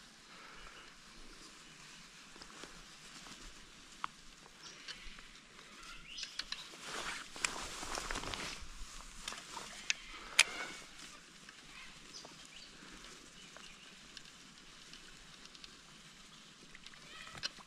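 Water ripples and laps gently against a fallen log.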